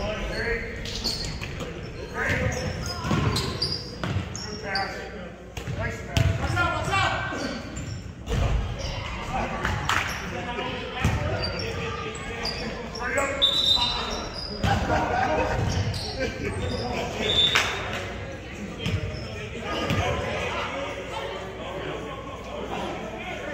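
Players call out to each other across the echoing gym.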